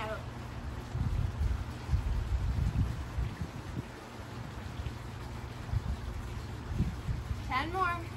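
A woman's feet thump quickly on a hard floor.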